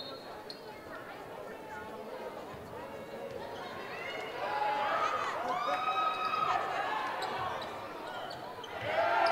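A crowd murmurs and chatters in an echoing gym.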